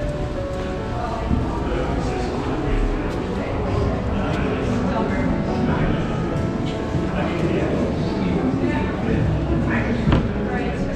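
Voices murmur and echo in a tiled tunnel.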